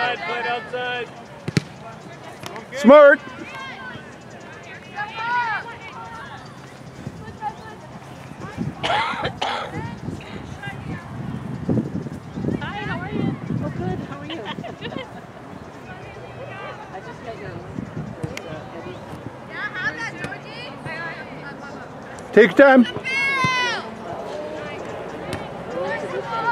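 Young women shout and call out across an open field outdoors.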